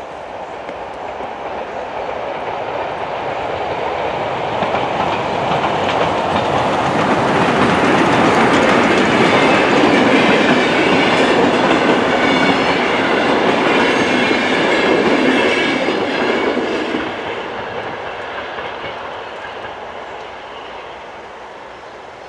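A level crossing bell rings steadily.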